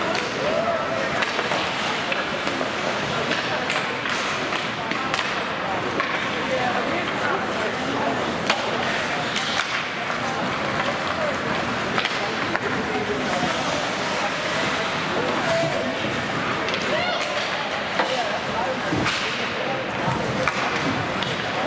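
Skates scrape and hiss across ice in a large echoing rink.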